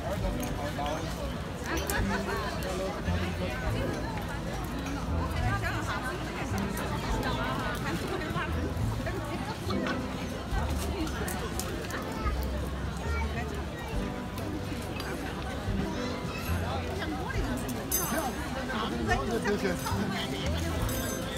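A crowd of men and women chatters busily all around.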